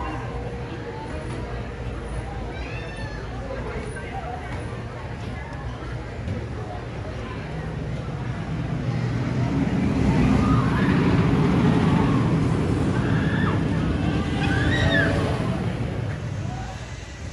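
A wooden roller coaster train rumbles and clatters along its track.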